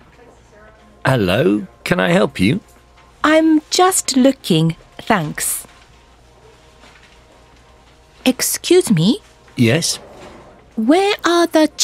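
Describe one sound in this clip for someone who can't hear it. A woman speaks clearly and calmly, as if reading out, in short phrases with pauses.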